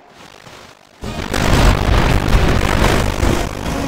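Cannons fire and shells explode in a loud naval battle.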